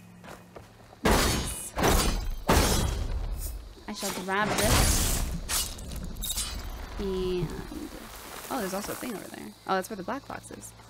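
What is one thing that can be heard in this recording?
Game sound effects whoosh and crash loudly.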